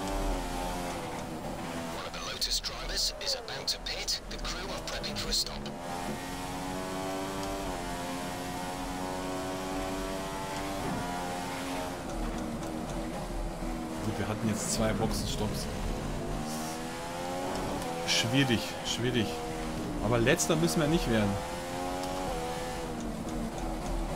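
A racing car engine whines steadily at high revs, rising and falling as it shifts gears.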